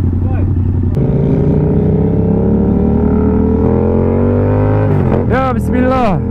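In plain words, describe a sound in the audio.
A motorcycle accelerates, its engine pitch rising steadily.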